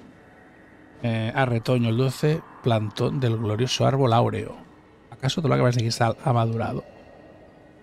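A man speaks slowly and dramatically, close to a microphone.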